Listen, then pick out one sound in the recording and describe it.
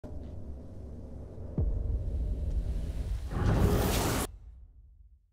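A deep magical rumble swells and ends in a loud rushing burst.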